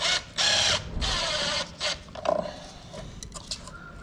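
A cordless drill whirs briefly.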